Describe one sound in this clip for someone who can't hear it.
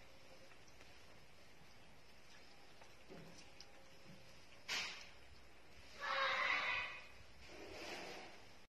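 Puppies lap and slurp at food.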